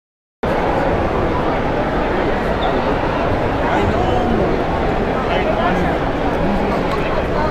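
A crowd chatters all around in a large echoing hall.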